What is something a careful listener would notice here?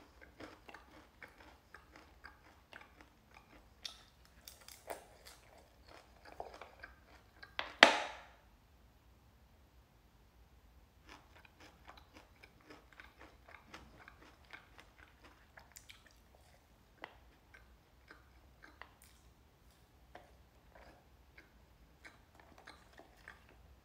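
A young man chews salad close to the microphone.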